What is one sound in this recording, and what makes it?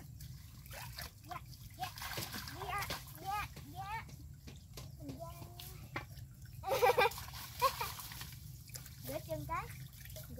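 Water splashes as hands move through a shallow pond.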